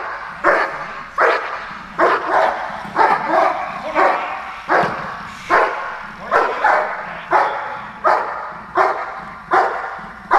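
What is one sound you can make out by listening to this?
A dog barks loudly and repeatedly in a large echoing hall.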